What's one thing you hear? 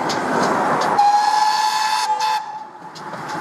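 A steam locomotive's whistle blows a long, steady note.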